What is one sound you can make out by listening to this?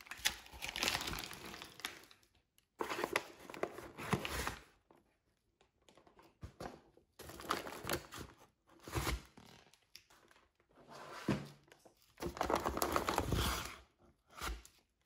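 Paper bags rustle and crinkle as hands lift them from a box.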